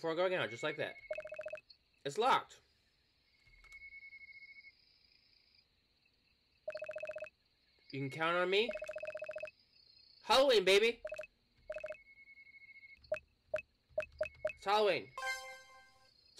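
A game plays quick, repeated electronic blips.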